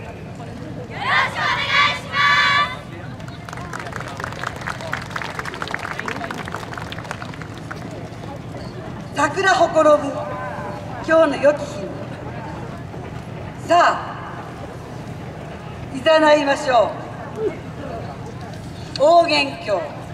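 A group of young women shout out together in short loud calls outdoors.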